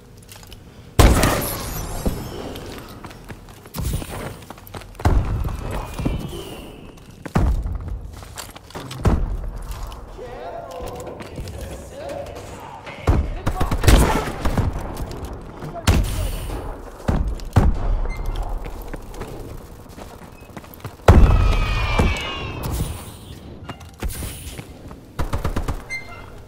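A sniper rifle fires loud single shots with a booming echo.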